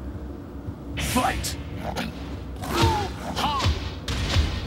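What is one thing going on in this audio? Punches and kicks thud and crack in a fast fight.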